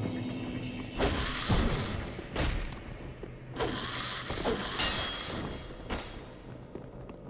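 A sword swishes and strikes in a fight.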